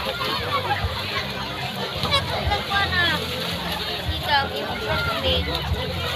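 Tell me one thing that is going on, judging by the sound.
Children splash as they run through shallow water.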